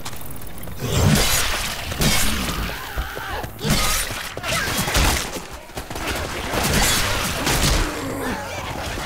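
A blade slashes and thuds into bodies in quick, repeated strikes.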